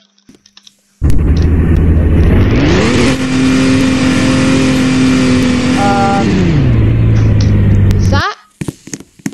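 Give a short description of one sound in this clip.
A car engine revs up, roars steadily and then winds down.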